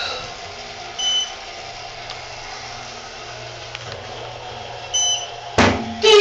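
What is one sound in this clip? An elevator chime beeps softly.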